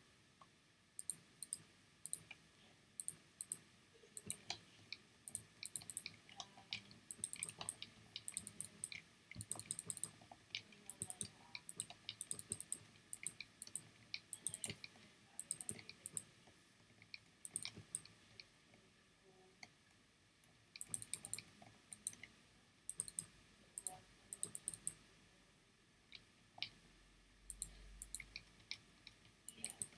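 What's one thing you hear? Blocks are placed one after another with short, soft clicks in a video game.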